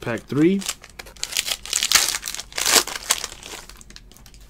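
A plastic wrapper crinkles and tears open.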